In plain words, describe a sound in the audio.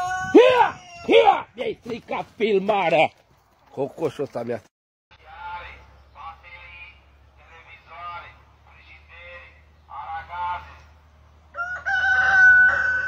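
A man speaks calmly, close to a phone microphone.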